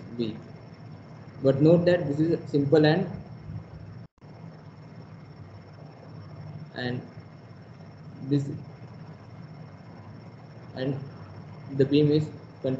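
A man explains calmly in short phrases, heard through an online call.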